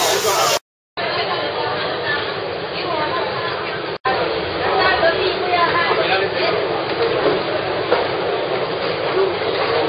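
Many men and women talk and chatter nearby in a lively crowd.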